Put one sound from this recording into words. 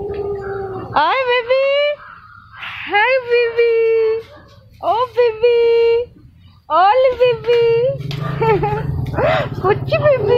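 Puppies whine and yelp in high, rising cries.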